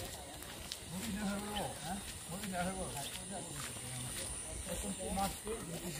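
Two men talk quietly a short way off, outdoors.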